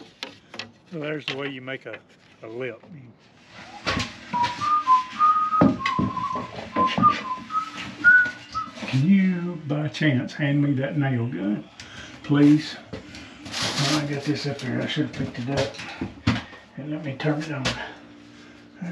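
A man talks nearby in a small room.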